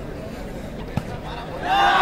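A ball is struck with a sharp thump.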